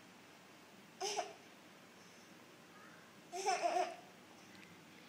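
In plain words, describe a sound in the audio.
A baby giggles and squeals happily.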